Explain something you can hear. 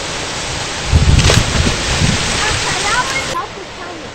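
Water splashes loudly as a person jumps into a pool.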